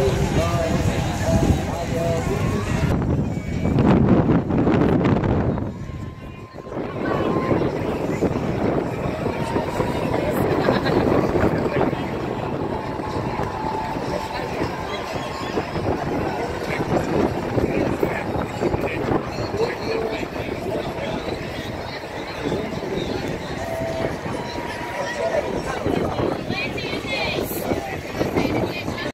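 A large outdoor crowd chatters and murmurs all around.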